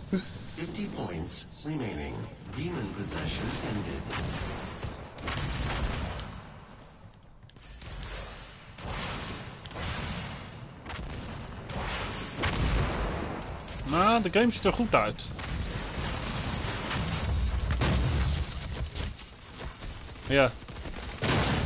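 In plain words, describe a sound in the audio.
Gunfire from a video game rattles and booms in rapid bursts.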